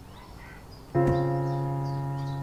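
A piano plays a sustained chord.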